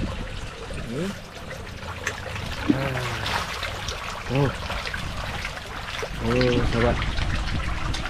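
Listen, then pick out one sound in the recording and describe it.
Fish splash and thrash at the surface of the water.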